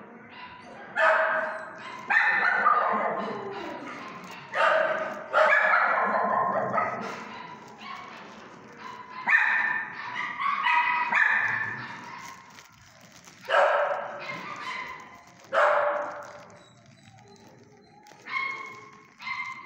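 A dog crunches dry food from a metal bowl.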